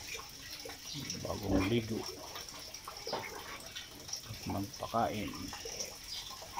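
A pig grunts and snuffles close by.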